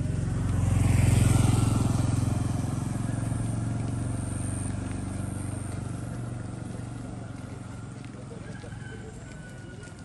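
A motorcycle engine hums as it passes close by and fades into the distance.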